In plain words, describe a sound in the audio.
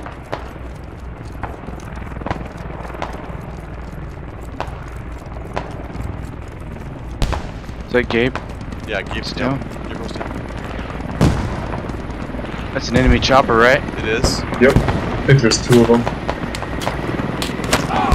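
A helicopter's rotor thumps steadily in the distance.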